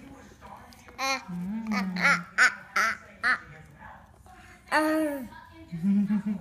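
A toddler squeals and babbles close by.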